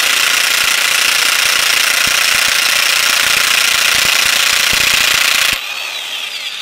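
An impact wrench hammers loudly with a rapid rattle.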